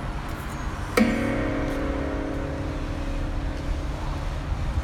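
Guitar strings are strummed once and ring out.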